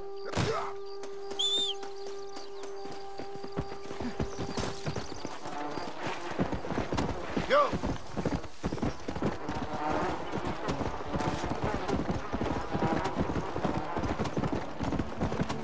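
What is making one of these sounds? Footsteps run over dry ground.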